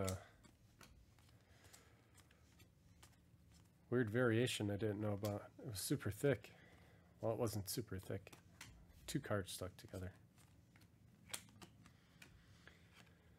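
Trading cards softly slide and flick against each other as they are flipped through by hand.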